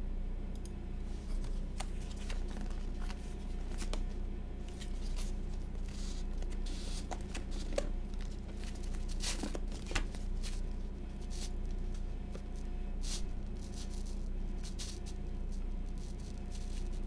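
A cardboard box rubs and taps in hands.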